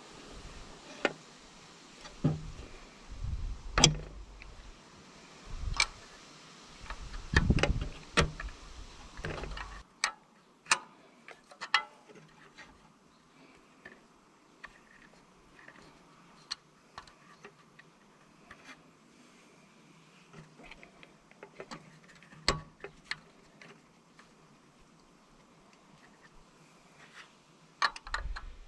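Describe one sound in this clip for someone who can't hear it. Wires and metal parts click and rattle as hands work at them close by.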